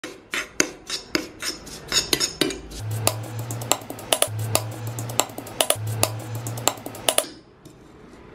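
A metal spoon scrapes and clinks against a metal pan.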